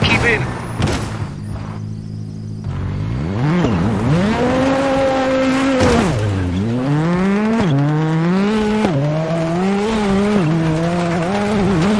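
A rally car engine idles low, then revs hard and climbs through the gears.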